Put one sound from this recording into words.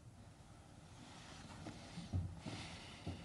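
Paper rustles softly on a table.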